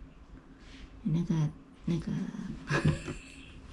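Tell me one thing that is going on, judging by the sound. A young girl speaks close by in a high, clear voice.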